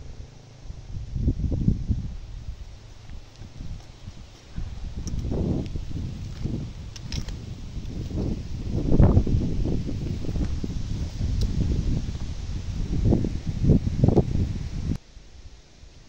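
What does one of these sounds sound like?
Wind gusts rumble loudly outdoors.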